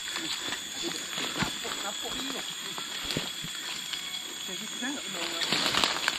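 Footsteps crunch on dry leaves and twigs on a steep path.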